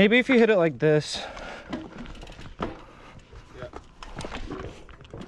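Bicycle tyres crunch and rattle over a rocky dirt trail.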